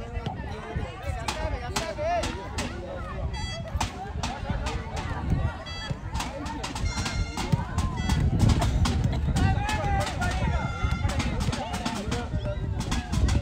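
Young players shout to each other across an outdoor pitch.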